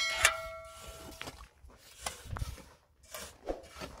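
Shovels knock against a metal wheelbarrow.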